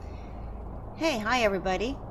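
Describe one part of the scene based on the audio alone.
A middle-aged woman speaks briefly into a microphone.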